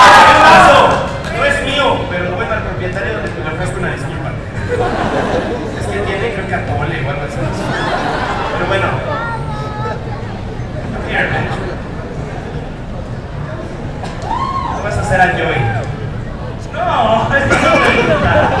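A man speaks with animation into a microphone, heard through loudspeakers in a large echoing room.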